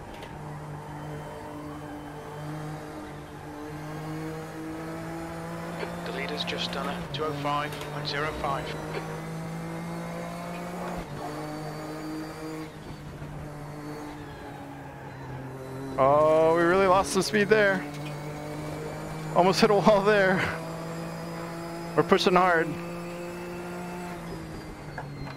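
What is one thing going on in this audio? A racing car engine drones steadily, rising and falling with gear changes.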